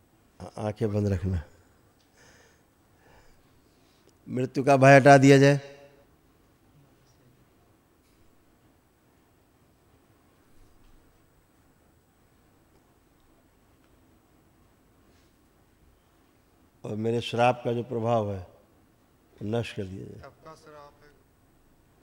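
A man speaks calmly and with warmth into a close microphone.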